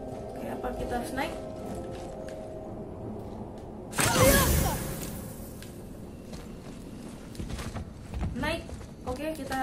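A young woman talks casually into a microphone, close by.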